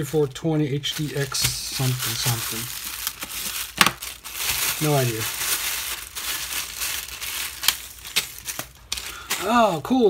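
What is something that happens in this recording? A plastic mailer bag crinkles and rustles.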